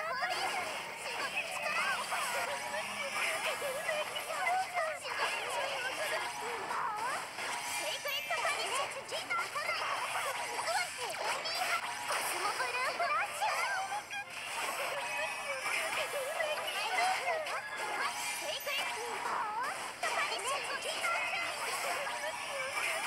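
Magic attacks whoosh and burst in quick succession.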